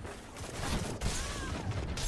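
An electric blast crackles loudly.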